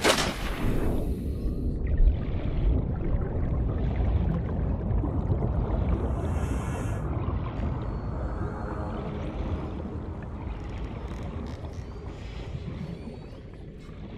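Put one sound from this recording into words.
Muffled underwater rumbling goes on steadily.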